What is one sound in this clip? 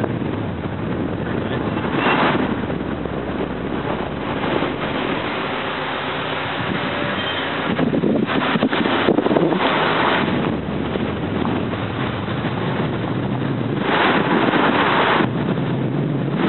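Wind rushes and buffets against the microphone in gusts.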